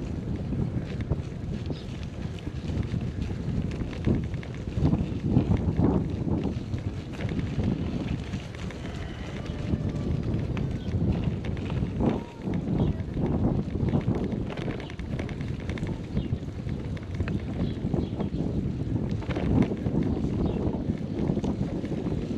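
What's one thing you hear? Bicycle tyres crunch over a rough gravel road.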